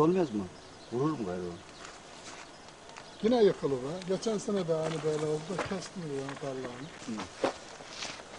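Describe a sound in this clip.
An elderly man calls out loudly outdoors.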